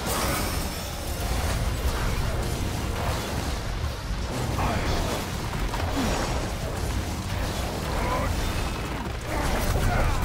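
Sword slashes whoosh and clang rapidly.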